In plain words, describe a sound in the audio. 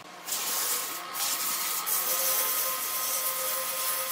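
Sandpaper rubs against spinning wood.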